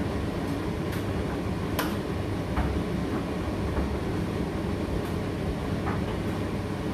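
A condenser tumble dryer hums and rumbles as its drum turns.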